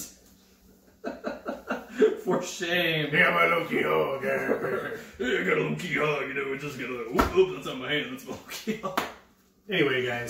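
A young man laughs loudly nearby.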